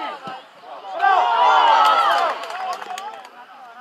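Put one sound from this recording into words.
Young players cheer loudly.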